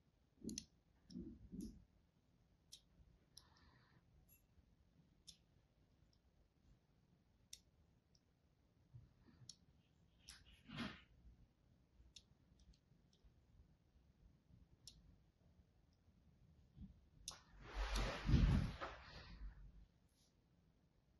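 A blade scrapes and cuts into a soft bar of soap with crisp little clicks.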